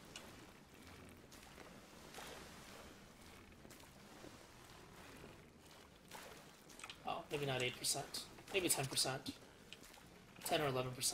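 Waves lap softly around a small sailing boat.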